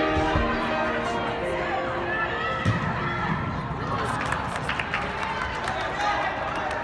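Players shout and call out across a large echoing indoor hall.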